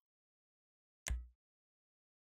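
A short menu click sounds.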